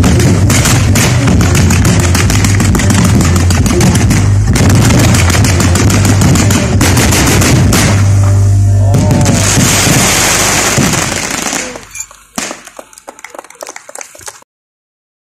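Fireworks crackle and bang rapidly and loudly.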